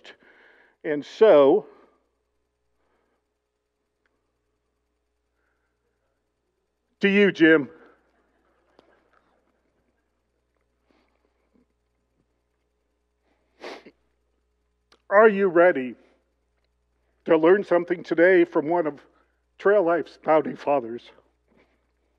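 A man speaks into a microphone with long pauses, heard through a loudspeaker in a large echoing hall.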